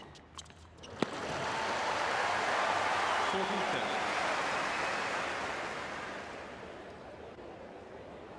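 A large crowd cheers and applauds loudly in a big arena, then fades.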